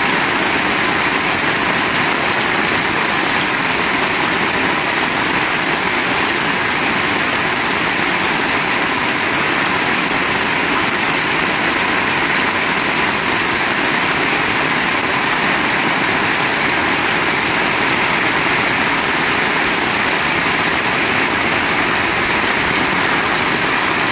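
Heavy rain pours steadily onto wet pavement outdoors.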